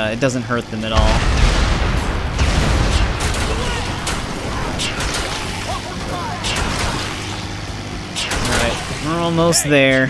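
A heavy truck engine roars steadily.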